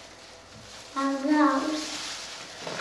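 A young girl speaks briefly nearby.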